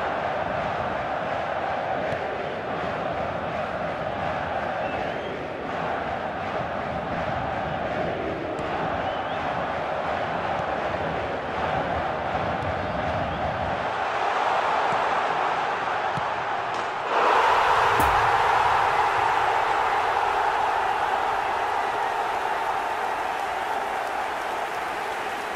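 A stadium crowd roars steadily, swelling louder near the end.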